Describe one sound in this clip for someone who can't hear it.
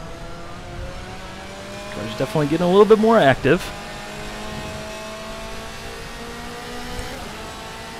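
A race car engine drones steadily at speed.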